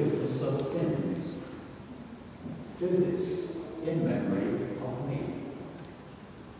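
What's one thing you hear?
A man speaks calmly over a loudspeaker in a large echoing hall.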